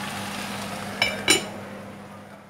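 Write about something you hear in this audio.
An enamel lid clinks onto a pot.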